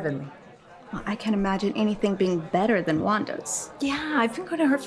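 A woman speaks coolly up close.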